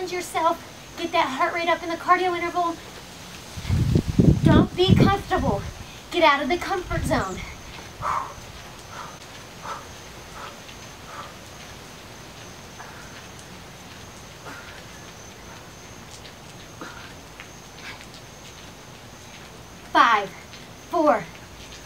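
Sneakers tap softly on a mat in a quick rhythm.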